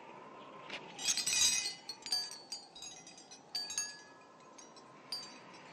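Glass crystal pendants tinkle and clink as a hand brushes them.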